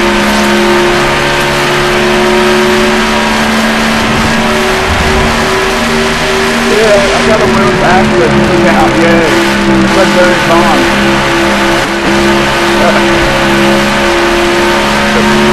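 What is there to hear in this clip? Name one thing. A race car engine roars at a steady high pitch.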